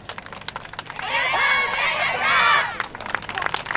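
A group of dancers shouts together in unison outdoors.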